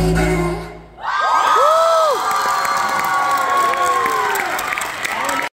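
A crowd of young women scream and cheer.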